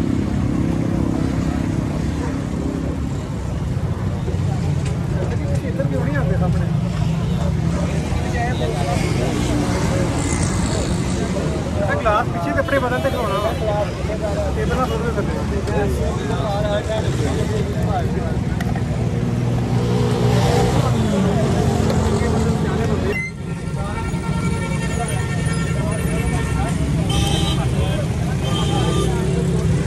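A crowd of men talk at once nearby.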